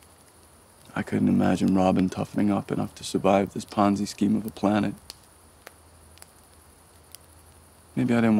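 A man speaks calmly and quietly, close by.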